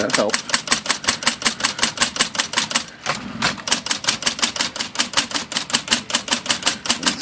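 Typewriter keys clack rapidly and steadily, with a brief pause.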